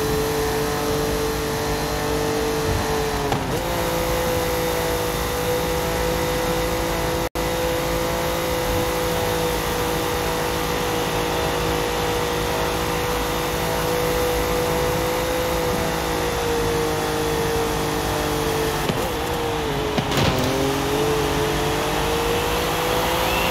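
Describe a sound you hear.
A race car engine roars at high speed, its pitch dipping briefly as the car slows and then rising again.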